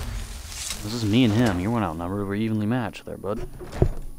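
A heavy wooden door opens.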